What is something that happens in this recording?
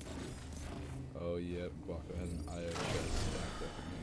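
A chest bursts open with a chiming jingle.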